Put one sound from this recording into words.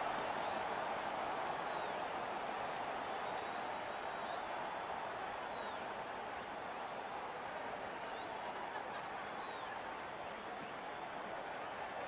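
A large crowd cheers and roars in an echoing arena, slowly quieting.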